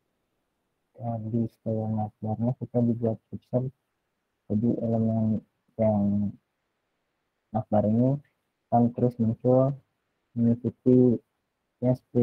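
A man talks calmly through an online call.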